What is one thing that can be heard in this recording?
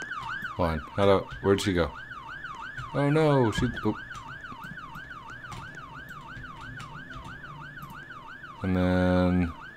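An ambulance siren wails steadily, rising and falling.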